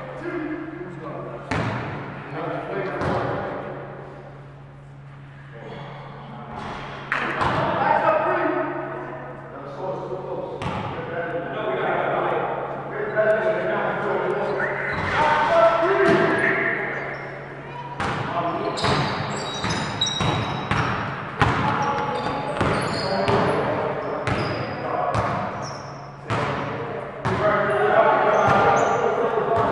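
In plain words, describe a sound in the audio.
Men shout and call out across the court.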